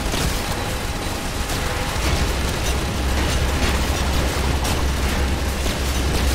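Video game gunfire crackles rapidly.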